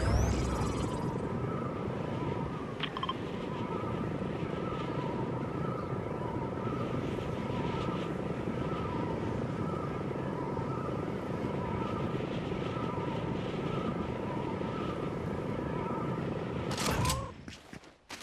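Wind rushes steadily during a glide.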